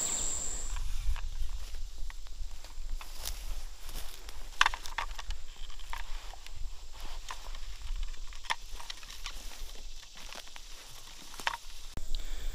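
A climber's gear clinks and scrapes against a tree trunk.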